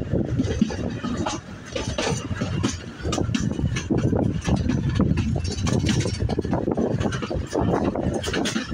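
A train rumbles and clatters steadily along the track.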